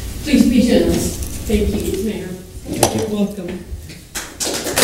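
An older woman speaks into a microphone.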